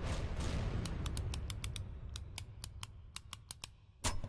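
Menu clicks tick in quick succession.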